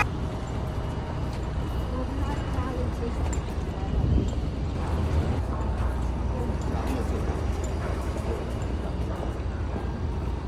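Motor scooters hum by.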